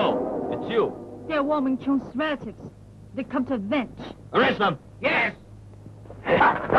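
A young woman speaks tensely.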